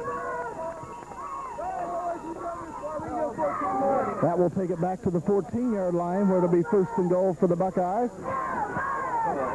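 Young men talk and call out together outdoors.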